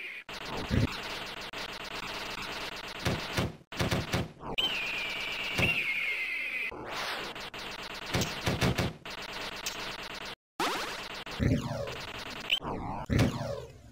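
Video game explosions boom repeatedly.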